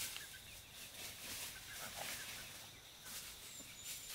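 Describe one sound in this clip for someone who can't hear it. Chickens scratch and rustle in dry leaves.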